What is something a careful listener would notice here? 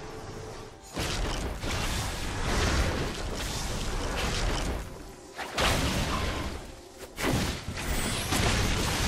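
Magical spell blasts whoosh and crackle in a fight.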